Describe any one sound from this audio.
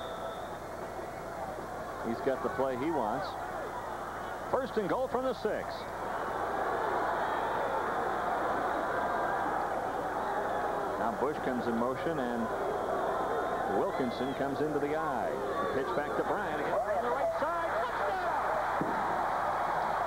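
A large crowd roars and cheers outdoors, swelling louder partway through.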